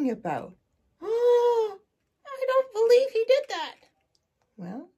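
A woman makes a high, sing-song puppet voice.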